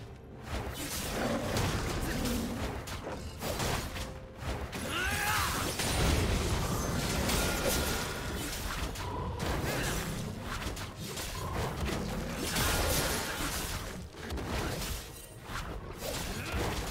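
Weapon strikes land in quick, repeated hits.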